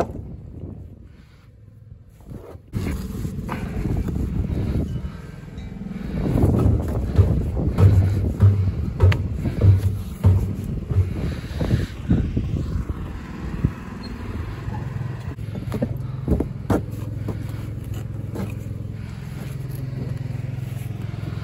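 Stones knock and scrape against each other close by.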